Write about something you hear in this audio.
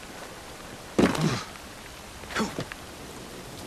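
A heavy thud sounds as a body lands and grabs hold.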